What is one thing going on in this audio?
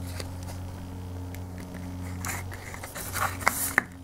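Fingers brush and rub close by with scratchy noises.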